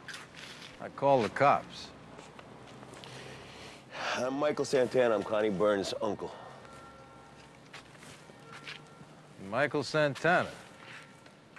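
Two men talk calmly nearby.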